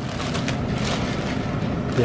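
A plastic bag of pasta rustles in a hand.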